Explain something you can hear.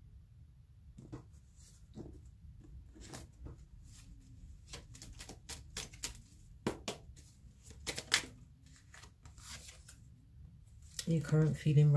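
Playing cards riffle and slap as they are shuffled by hand.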